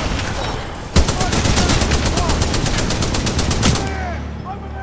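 An automatic rifle fires a fast, steady burst.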